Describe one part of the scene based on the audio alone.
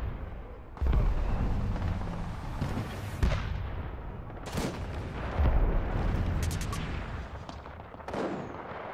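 Heavy explosions boom nearby, one after another.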